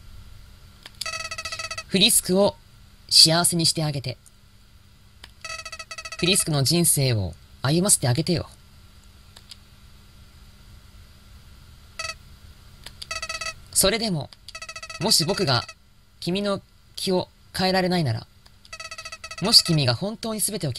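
Quick runs of high electronic beeps chirp as text is typed out.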